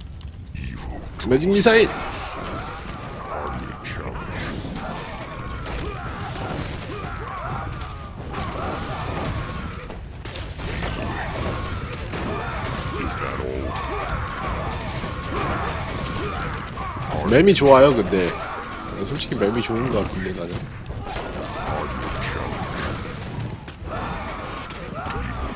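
Weapons clash and strike rapidly in a busy battle.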